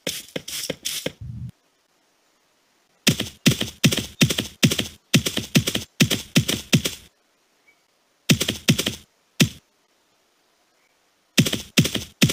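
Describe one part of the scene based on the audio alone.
Footsteps thud on the ground in a quick, steady rhythm, with pauses.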